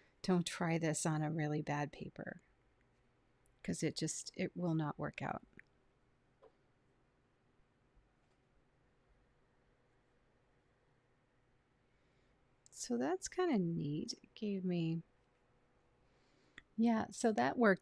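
A woman speaks calmly and clearly into a microphone, pausing between phrases.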